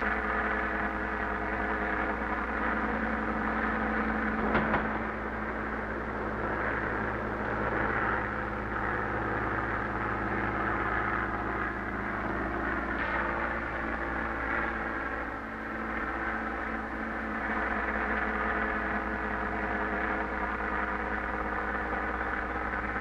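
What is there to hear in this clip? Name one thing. A propeller plane engine drones steadily.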